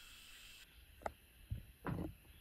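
Fabric rustles as a curtain is pushed aside.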